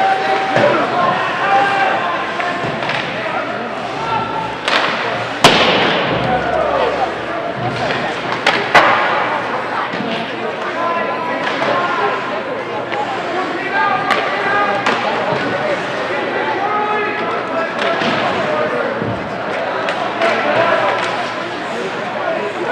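Ice hockey skates scrape across the ice.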